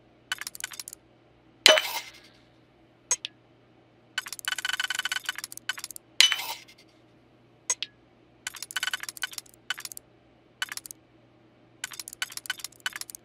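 A lockpicking game's dial clicks and ticks as it turns.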